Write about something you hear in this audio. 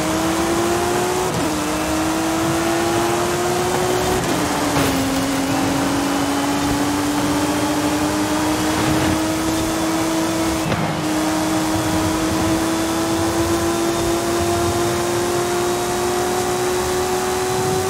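A racing car engine roars at high revs, its pitch dropping briefly at each gear shift and then climbing again.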